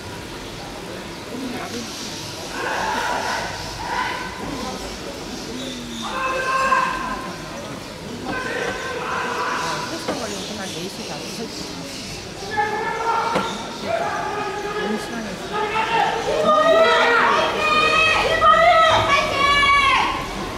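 A track bicycle with a disc rear wheel whooshes past at a sprint.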